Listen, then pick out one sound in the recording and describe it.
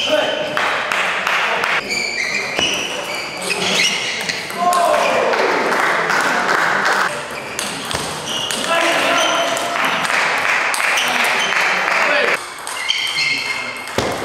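A ping-pong ball clicks back and forth off paddles and the table in a fast rally.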